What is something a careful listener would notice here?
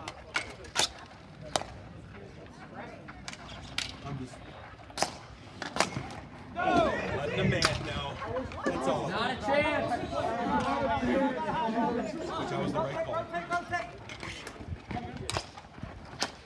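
Hockey sticks smack a ball with sharp cracks.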